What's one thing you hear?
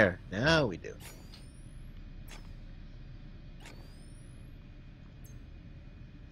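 Short electronic interface blips sound now and then.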